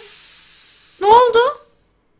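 A young woman screams in fright into a microphone.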